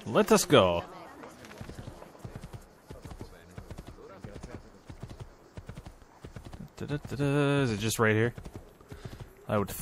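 A horse's hooves clop rapidly on the ground at a gallop.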